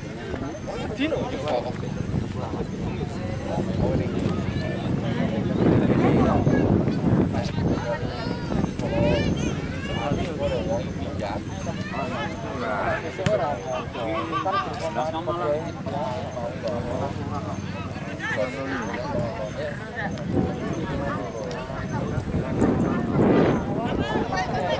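Football players shout to one another across an open field.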